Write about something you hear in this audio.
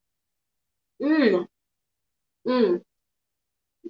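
A young woman makes a pleased sound while tasting food.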